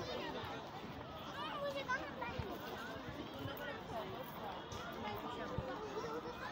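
A crowd of men, women and children chatters and calls out across an open outdoor space.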